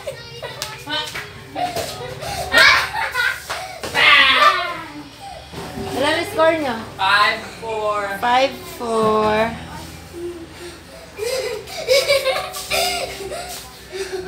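A boy laughs and shouts playfully.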